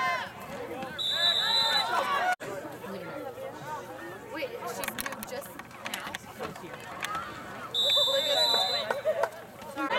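A referee's whistle blows shrilly twice.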